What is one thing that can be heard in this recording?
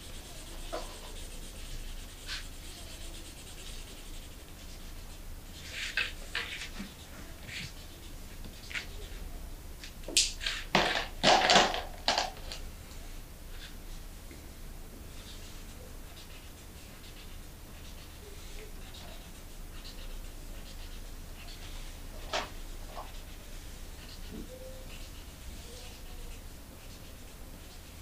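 A marker scratches and squeaks on paper.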